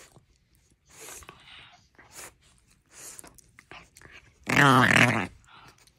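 A small dog snarls and yaps loudly.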